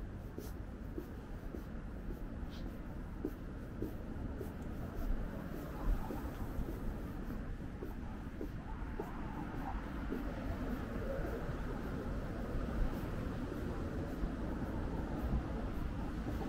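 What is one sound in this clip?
City traffic hums low and steady in the distance.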